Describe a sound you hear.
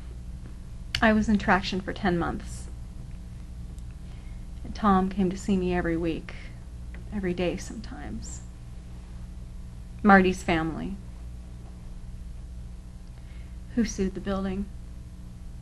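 A young woman speaks calmly and close by, in short phrases with pauses.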